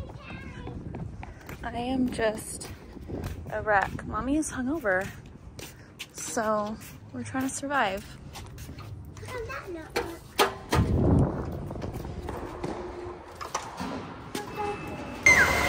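Small children run with quick footsteps on pavement.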